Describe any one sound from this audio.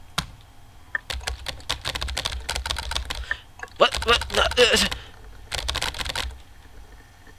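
Keyboard keys clatter in quick bursts of typing.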